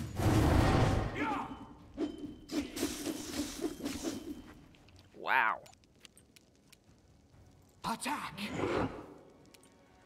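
A magical spell bursts and crackles with a loud whoosh.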